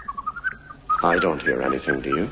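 An older man speaks up close by.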